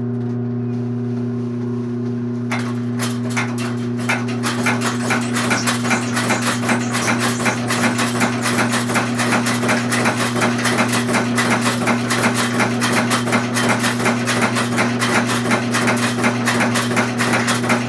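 Belt-driven line shafting hums.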